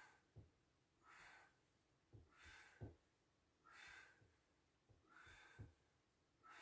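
Feet and body bump softly on a floor.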